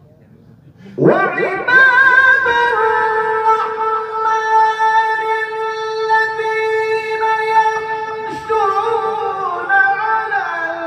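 A man sings long, drawn-out notes loudly through a microphone.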